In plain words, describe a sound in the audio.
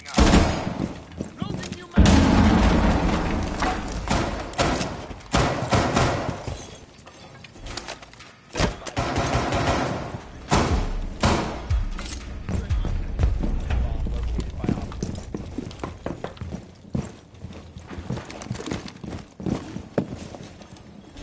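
Footsteps thud across a floor.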